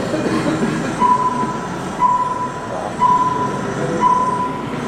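A countdown beeps once every second through loudspeakers.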